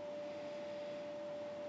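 A man sniffs deeply.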